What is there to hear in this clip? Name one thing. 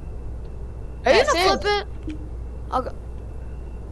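A young boy speaks briefly into a headset microphone.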